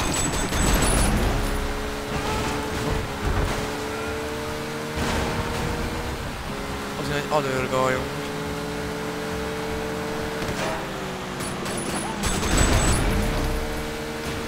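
A car engine hums steadily and revs as it drives.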